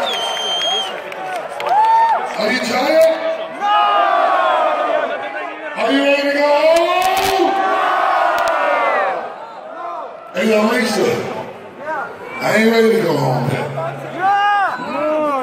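A man raps loudly into a microphone over a loudspeaker in a large echoing hall.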